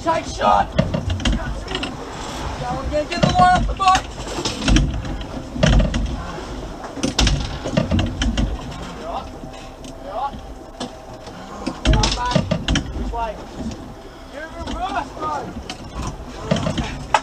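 Men talk and call out nearby, outdoors in wind.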